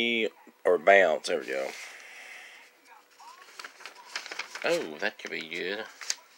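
Paper pages rustle as they turn.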